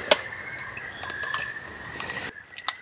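Wooden chopsticks tap on a cup.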